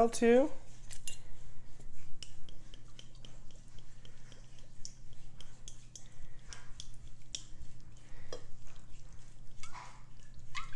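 A spice shaker rattles as it is shaken.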